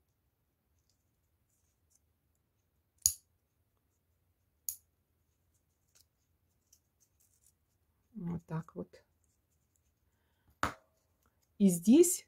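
Metal tweezers click and tap lightly.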